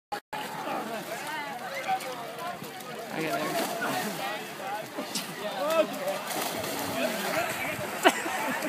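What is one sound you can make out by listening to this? A crowd of young men and women shout and cheer outdoors.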